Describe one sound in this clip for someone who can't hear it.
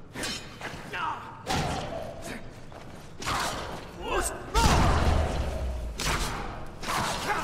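Beasts snarl and squeal close by.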